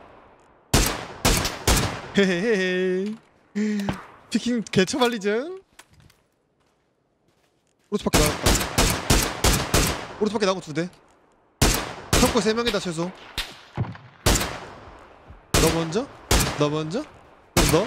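Gunshots crack sharply, one after another.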